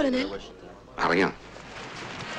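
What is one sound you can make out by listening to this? A man speaks with emotion.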